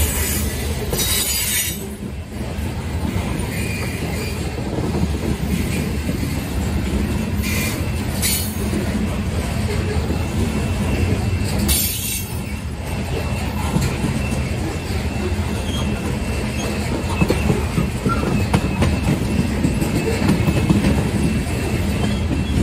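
A long freight train rumbles steadily past on the tracks.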